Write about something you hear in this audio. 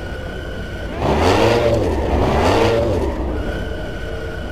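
A car engine revs loudly twice in quick bursts.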